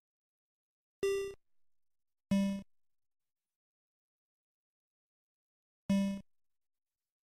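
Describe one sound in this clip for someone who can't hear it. Simple electronic beeps sound as menu choices are made.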